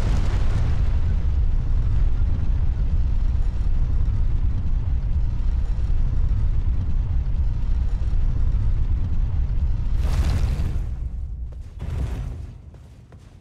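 A heavy stone lift rumbles low and steady as it moves.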